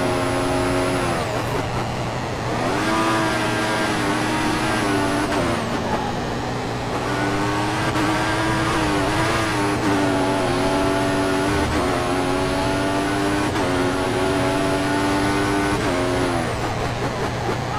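A racing car engine drops in pitch as the car brakes.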